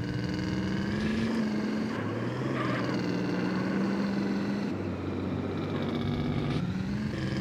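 A car engine roars steadily, shifting pitch as it drives.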